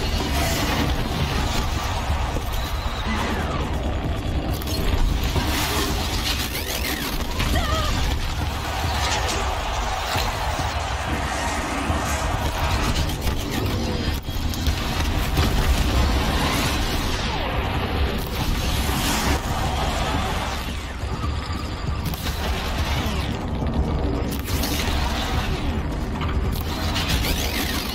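A large machine creature stomps and roars.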